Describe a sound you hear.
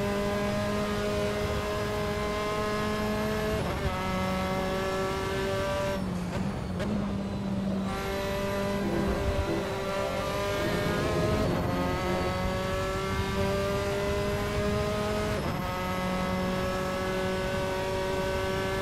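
A racing car engine screams at high revs, dropping in pitch with each gear shift and climbing again.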